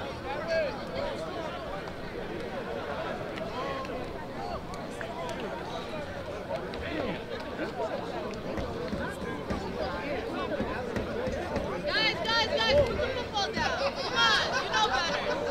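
Players slap hands as they pass each other in a line.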